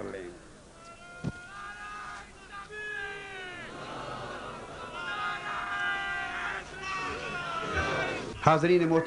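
A large crowd chants together in response.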